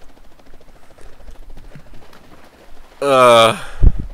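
A body splashes into water.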